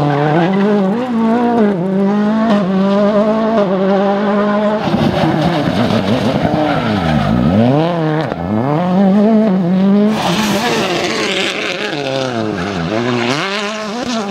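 Gravel sprays from spinning tyres.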